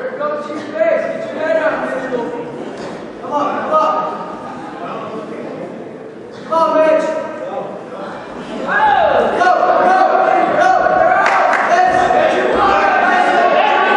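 Spectators, men and women, shout encouragement loudly in a large echoing gym.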